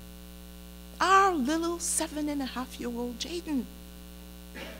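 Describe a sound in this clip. A middle-aged woman speaks with emphasis into a microphone, in a large echoing room.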